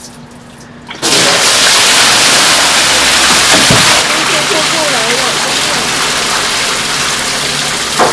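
Water gushes and splashes loudly over a metal edge.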